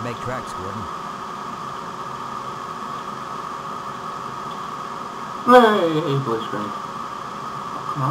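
A man types on a keyboard.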